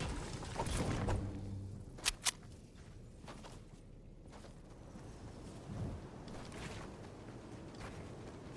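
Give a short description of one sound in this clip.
Game footsteps patter on hard ground.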